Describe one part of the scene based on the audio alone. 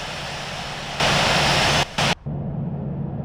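A loud burst of engine roar swells briefly, then turns muffled.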